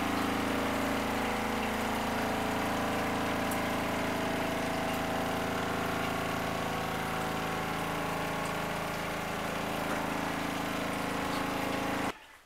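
A small washing machine's motor hums steadily.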